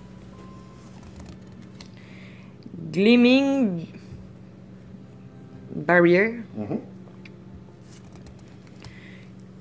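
Playing cards slide and flick softly against each other.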